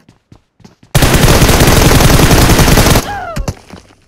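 A rifle fires a long rapid burst.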